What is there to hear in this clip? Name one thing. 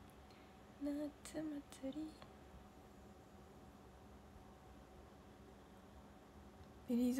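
A young woman speaks softly and briefly, close to a microphone.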